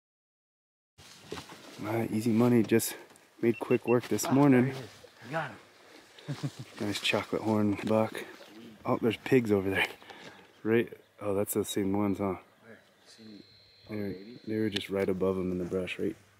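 A man talks calmly close by, outdoors.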